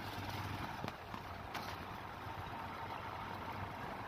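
A tractor engine chugs close by.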